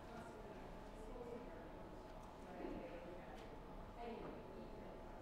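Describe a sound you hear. A woman speaks quietly at a distance.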